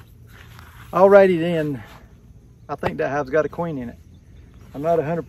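A middle-aged man talks calmly and close by, outdoors.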